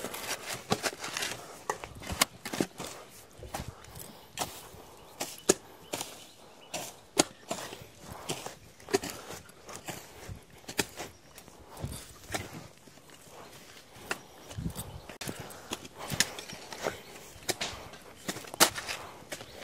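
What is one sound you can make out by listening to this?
Hoes strike and scrape the dry soil with repeated thuds.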